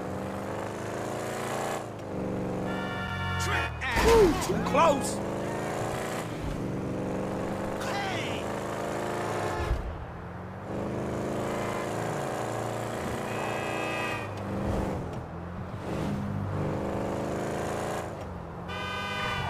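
A car engine drones steadily and revs up and down as it speeds along.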